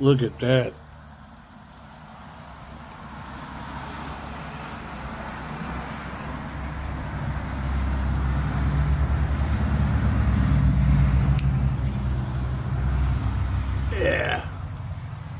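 A firework fountain hisses and roars as it sprays sparks.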